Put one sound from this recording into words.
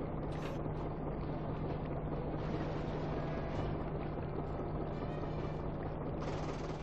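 A tank engine rumbles steadily with a low drone.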